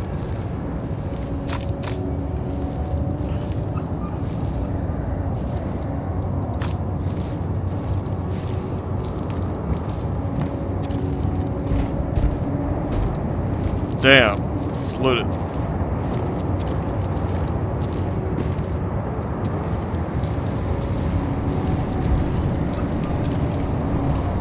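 Footsteps tread steadily over the ground.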